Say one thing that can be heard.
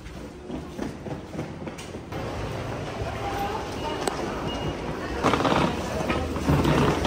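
Footsteps tap on a hard floor close by.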